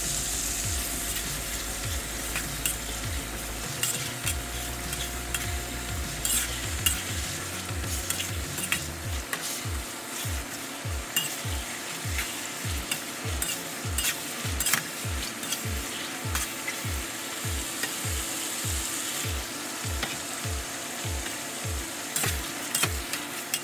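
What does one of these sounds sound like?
Meat sizzles steadily in hot oil.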